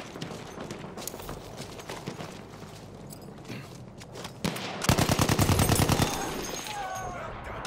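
Distant gunfire and explosions rumble throughout.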